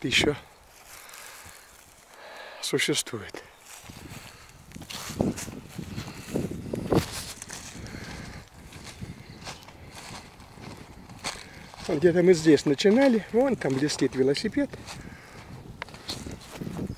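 Footsteps crunch and rustle through dry leaves and undergrowth.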